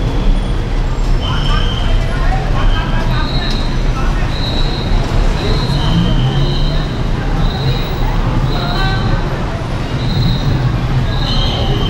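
Footsteps shuffle along a hard floor.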